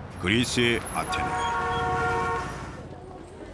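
A car horn blares steadily.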